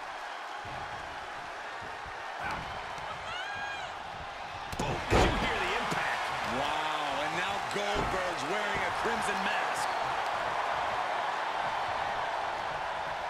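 A large crowd cheers steadily.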